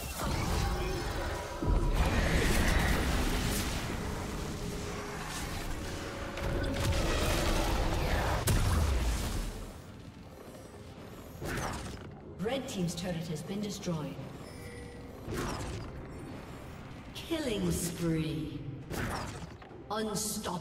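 Magic spells crackle and boom in quick bursts.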